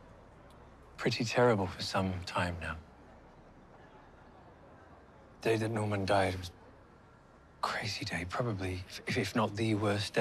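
A man speaks softly and calmly close by.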